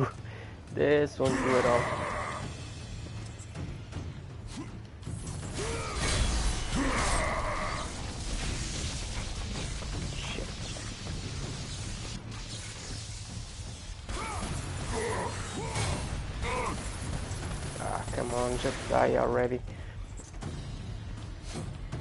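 Blades slash and strike repeatedly in a fight.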